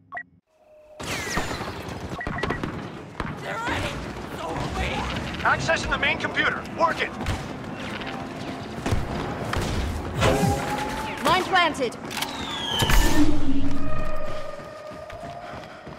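Laser guns fire in quick bursts amid loud battle noise.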